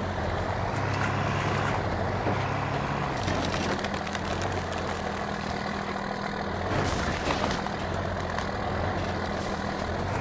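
An off-road buggy engine drones steadily, changing pitch as it climbs.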